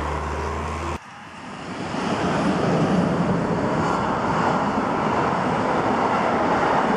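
An electric freight train rumbles past.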